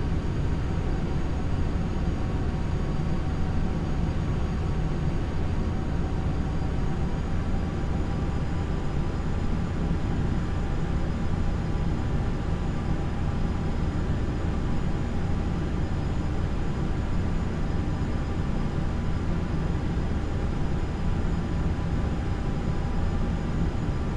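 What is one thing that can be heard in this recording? Jet engines hum steadily with a low, even roar.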